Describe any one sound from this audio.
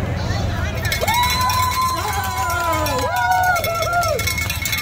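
A woman shouts with excitement nearby.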